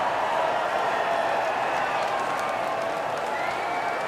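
A crowd claps and applauds loudly.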